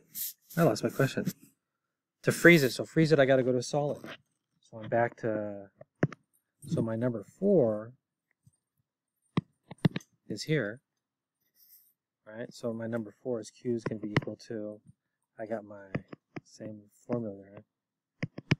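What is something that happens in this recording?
A middle-aged man speaks calmly into a close microphone, explaining.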